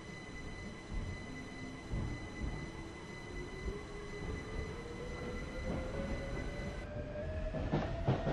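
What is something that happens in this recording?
Train wheels rumble and clack over rails.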